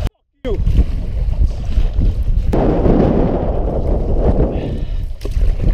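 A paddle splashes and churns the water.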